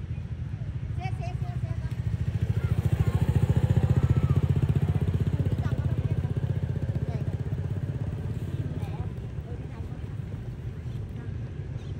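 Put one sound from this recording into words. A motorbike engine hums as it rides past close by and slowly fades.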